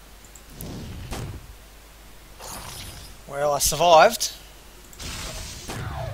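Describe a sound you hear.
Short magical whooshes and chimes ring out from spells being cast.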